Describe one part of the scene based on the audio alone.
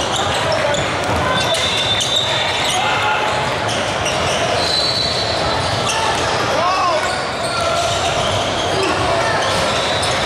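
A basketball thumps on a hardwood floor.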